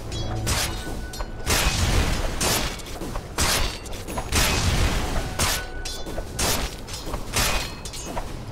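Game weapons clash and spells burst in quick, noisy blasts.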